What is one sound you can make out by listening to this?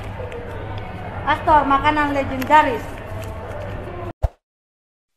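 Young women talk and laugh close by, heard through a phone's small microphone.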